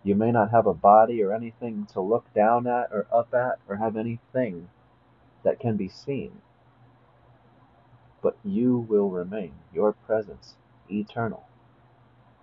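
A young man speaks calmly and close up, in pauses.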